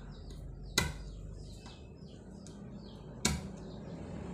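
A hammer taps a chisel into wood.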